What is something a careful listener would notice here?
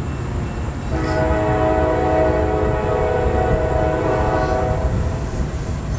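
A train horn blows a long, loud blast.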